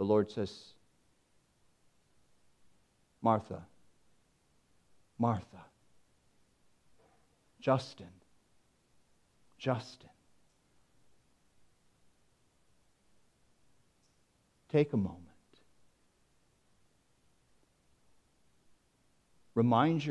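A man speaks slowly and deliberately through a microphone, with long pauses between short phrases.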